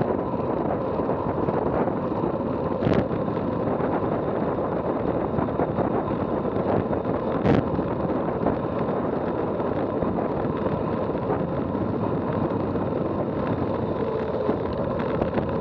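Wind rushes loudly past a fast-moving bicycle rider.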